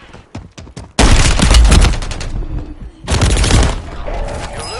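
Gunshots and explosions burst loudly and close by.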